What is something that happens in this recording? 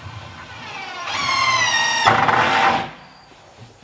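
A power tool whirs and revs up briefly.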